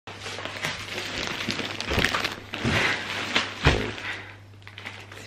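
Plastic mailer bags rustle and crinkle close by.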